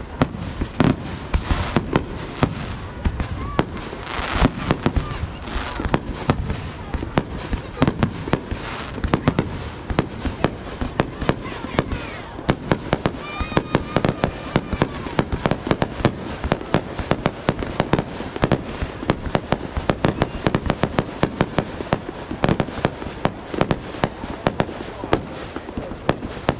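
Fireworks burst and crackle in rapid bangs nearby.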